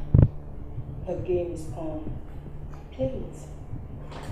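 A young woman speaks sharply close by.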